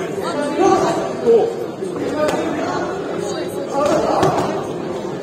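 A crowd of men's voices shouts and cheers in an echoing hall.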